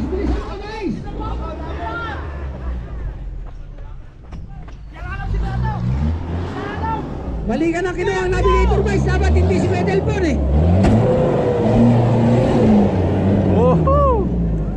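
An off-road engine revs hard, rising and falling in pitch.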